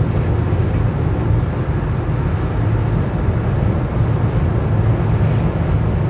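A lorry rumbles past close by.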